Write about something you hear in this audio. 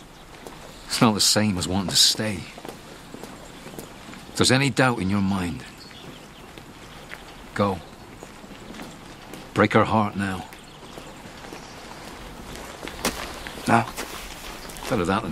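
A young man speaks in a low, calm voice nearby, in short phrases with pauses.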